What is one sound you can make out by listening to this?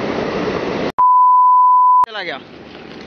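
A steady test tone beeps.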